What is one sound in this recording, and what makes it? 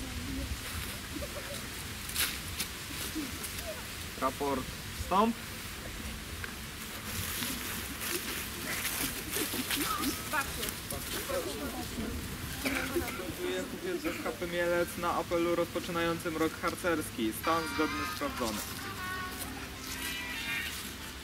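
A young man speaks to a group outdoors.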